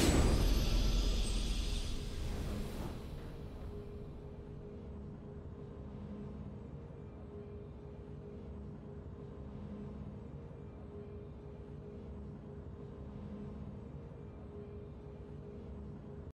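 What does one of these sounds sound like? A triumphant game fanfare rings out and fades into soft, steady background music.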